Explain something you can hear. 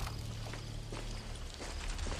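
Leaves rustle as someone pushes through a bush.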